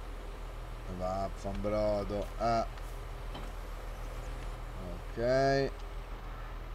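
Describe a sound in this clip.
Hydraulic mower arms whine as they fold out.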